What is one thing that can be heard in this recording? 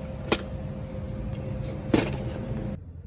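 Plastic toy cars clatter together in a tub.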